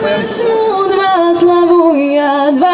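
A young woman sings through a loudspeaker.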